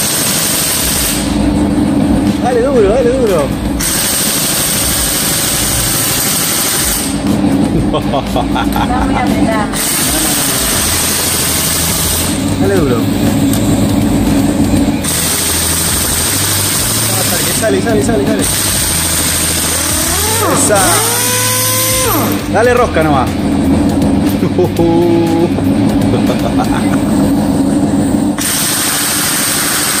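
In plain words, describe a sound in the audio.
An air impact wrench whirs and rattles in short bursts.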